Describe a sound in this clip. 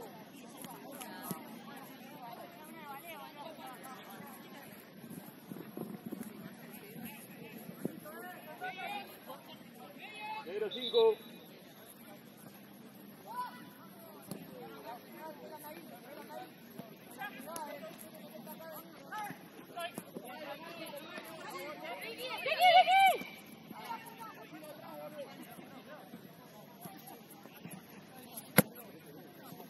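Young women shout and call out to each other across an open field outdoors.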